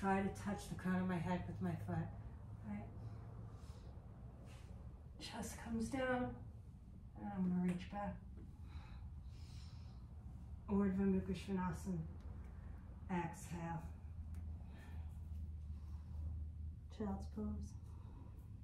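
A woman speaks calmly, giving instructions in pauses.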